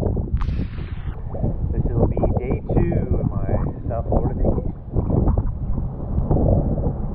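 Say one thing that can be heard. An older man talks calmly close by, outdoors.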